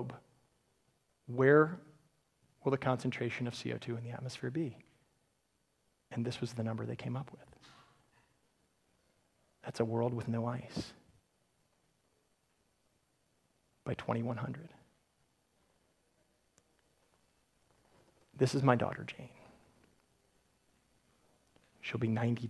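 A man speaks calmly into a microphone in short phrases with long pauses.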